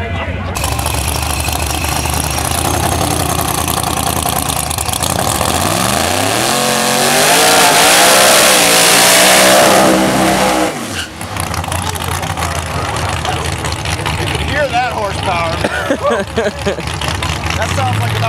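A drag car engine idles loudly and then revs hard.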